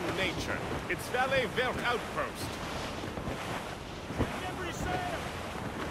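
Wind blows through the sails and rigging.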